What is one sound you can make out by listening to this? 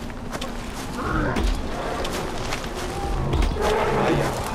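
A wild animal growls and snarls close by.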